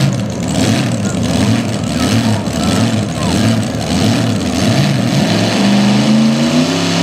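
A tractor engine idles with a loud, lumpy rumble.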